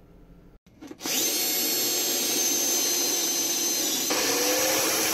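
A cordless drill whirs as it bores into a panel.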